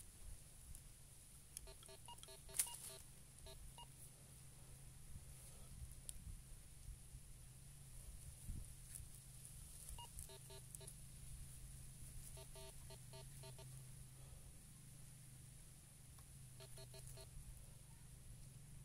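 Hands scrape and rustle through loose soil.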